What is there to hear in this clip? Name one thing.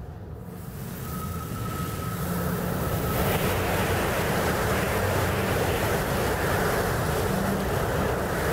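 A jet engine roars loudly as a craft lifts off and speeds away.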